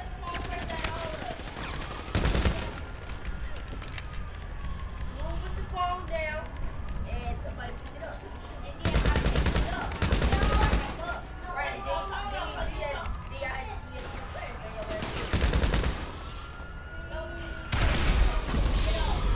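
A machine gun fires in loud rapid bursts.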